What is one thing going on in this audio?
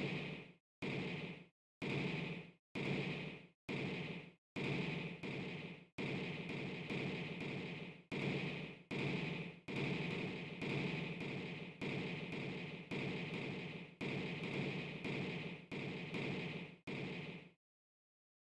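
Game fireballs whoosh and burst in quick repeated bursts.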